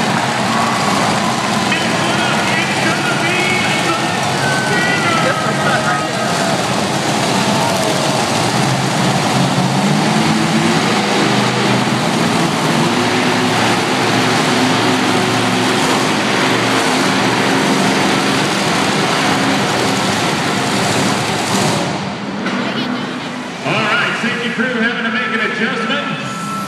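A crowd cheers and murmurs throughout.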